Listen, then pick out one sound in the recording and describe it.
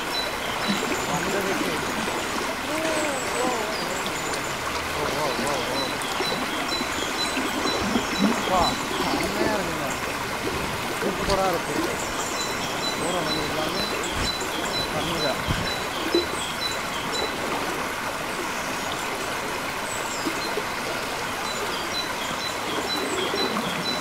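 A stream rushes and gurgles over rocks close by.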